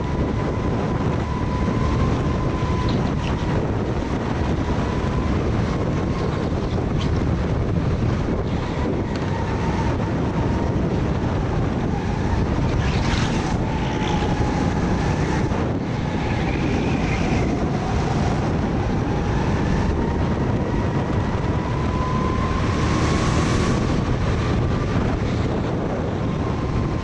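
A go-kart engine roars loudly up close, its pitch rising and falling.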